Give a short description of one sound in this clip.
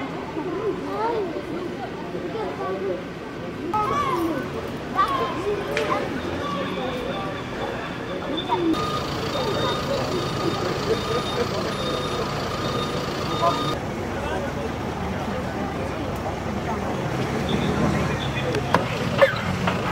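Men and women talk and call out nearby outdoors.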